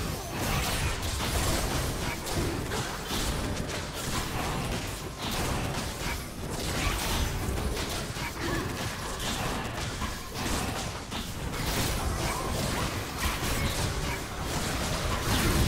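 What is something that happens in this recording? A dragon beats its wings.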